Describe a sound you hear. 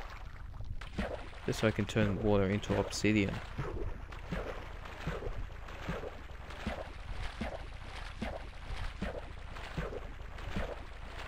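Footsteps splash through shallow water at a steady pace.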